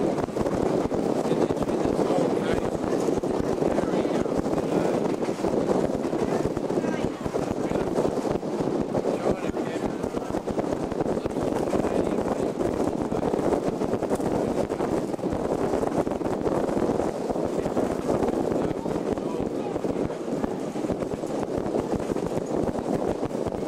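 A train rumbles and rattles steadily along its tracks.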